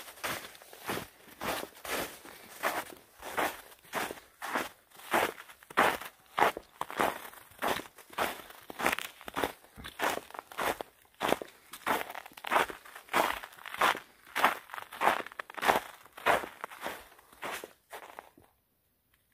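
Footsteps crunch steadily on snow and frozen ground.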